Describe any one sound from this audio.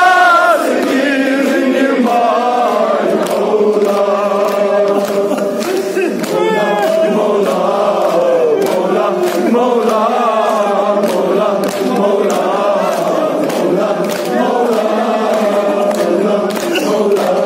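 A crowd of men chants loudly together close by.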